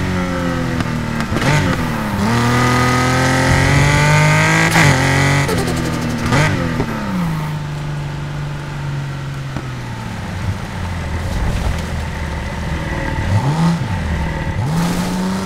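A sports car engine roars loudly, revving up and down as gears shift.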